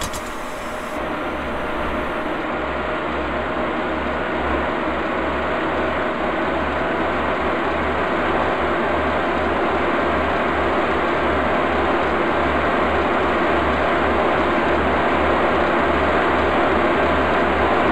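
Train wheels clack over rail joints in a steady rhythm.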